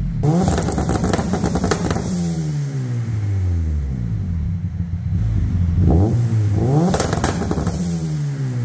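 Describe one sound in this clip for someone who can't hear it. A car exhaust roars and crackles loudly in an echoing room.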